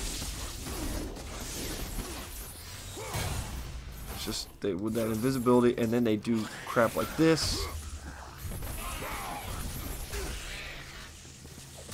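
Heavy blows thud and crack against enemies.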